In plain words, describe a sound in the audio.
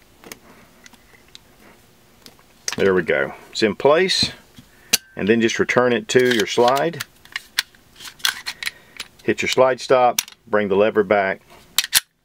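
Metal parts click and slide together as a pistol is taken apart and reassembled.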